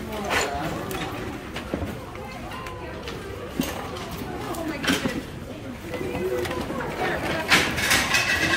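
Books and boxes knock and rustle as hands handle them.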